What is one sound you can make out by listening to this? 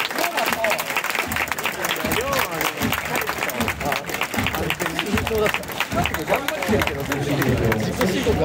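Fans clap in rhythm.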